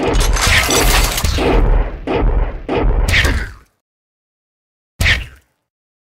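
Video game turrets fire blasts at enemies.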